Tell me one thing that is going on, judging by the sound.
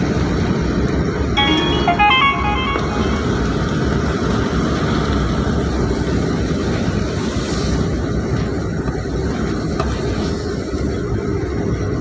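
Tyres roll on a paved road with a low rumble.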